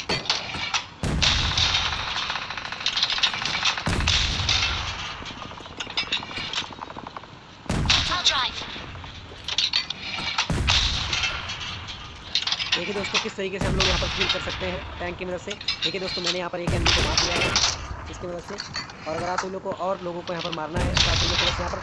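A rifle fires loud single shots at intervals.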